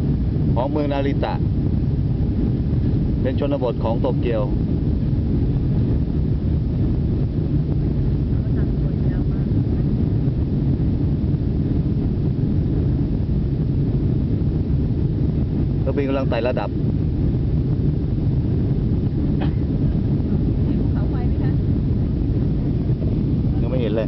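A jet airliner's engines roar steadily from inside the cabin.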